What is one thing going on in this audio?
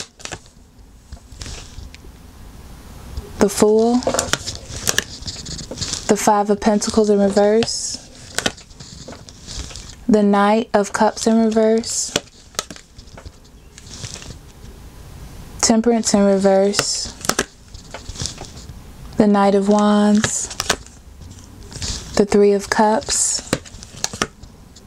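Playing cards are laid down softly on a cloth surface.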